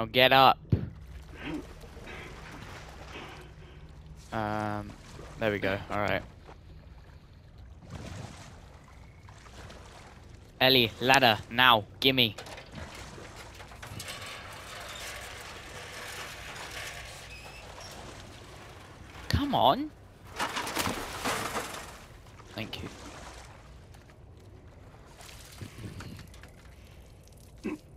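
Water sloshes and splashes as someone wades through it.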